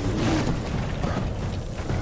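Flames burst with a whooshing roar.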